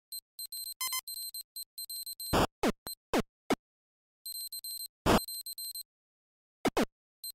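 Electronic game beeps and blips play in quick bursts.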